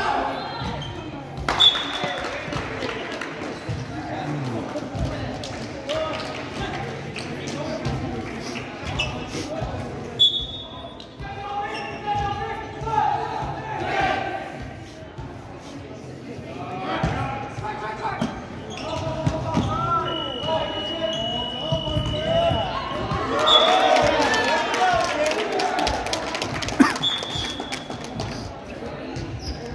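Young men call out to each other across a large echoing gym.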